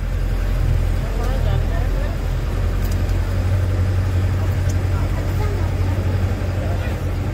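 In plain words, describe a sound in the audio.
A bus engine rumbles steadily inside the cabin.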